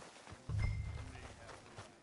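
Footsteps thud on dirt ground.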